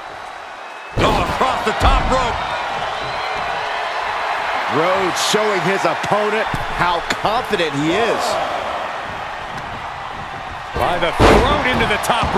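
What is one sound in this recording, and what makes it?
A body slams onto a wrestling ring mat with a heavy thud.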